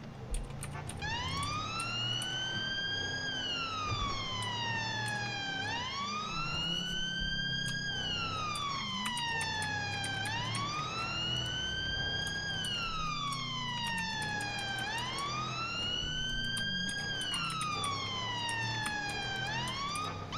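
A siren wails up and down, loud and close.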